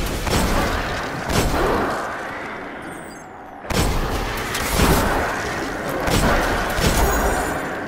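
Gunshots bang loudly in quick bursts.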